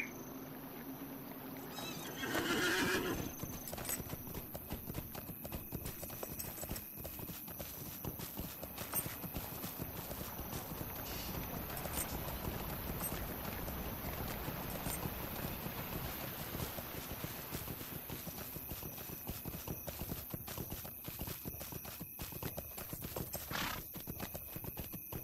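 A horse's hooves clop steadily along a path.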